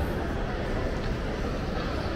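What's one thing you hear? A crowd of adults chatters faintly in a large, echoing hall.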